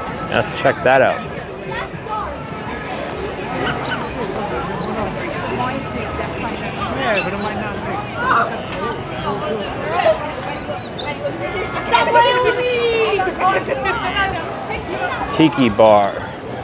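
A crowd chatters in the background outdoors.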